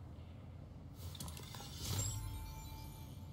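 A glider snaps open with a sudden whoosh.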